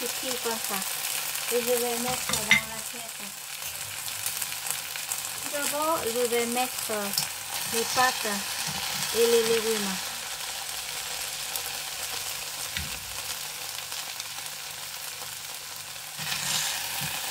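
Food sizzles softly in a frying pan.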